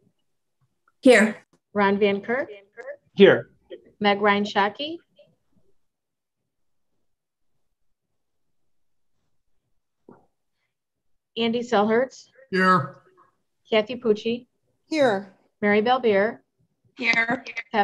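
A middle-aged woman speaks calmly over an online call, with pauses.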